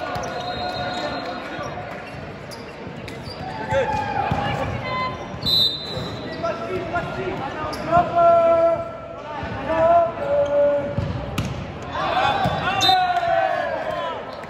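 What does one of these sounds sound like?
Teenage boys call out to each other on the court.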